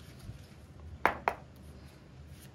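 A deck of cards is shuffled with quick riffling taps.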